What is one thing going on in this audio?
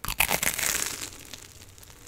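A young woman slurps food close to a microphone.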